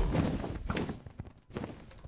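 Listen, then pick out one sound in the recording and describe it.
A bow twangs as an arrow is fired.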